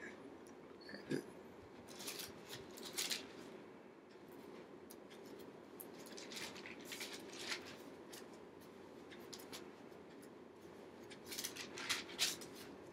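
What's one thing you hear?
An elderly woman reads aloud calmly and close by.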